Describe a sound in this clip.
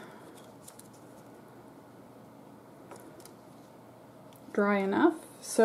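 Paper crinkles softly as it is folded.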